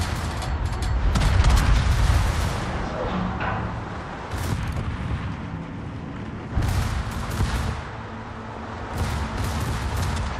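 Heavy ship guns fire with deep, rumbling booms.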